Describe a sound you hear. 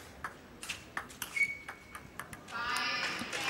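A table tennis ball clicks sharply back and forth off paddles and the table.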